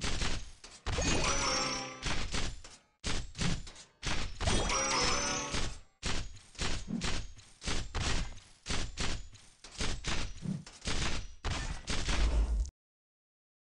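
Video game combat sound effects of hits and magic blasts play in quick bursts.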